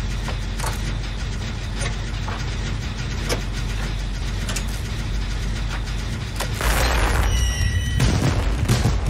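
A machine engine rattles and clanks with repeated sharp knocks.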